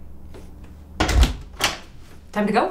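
A door opens with a knock of its latch.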